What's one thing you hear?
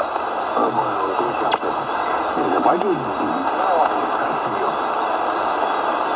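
A shortwave radio hisses with steady static.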